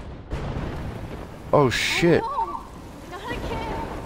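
A young woman exclaims in fear.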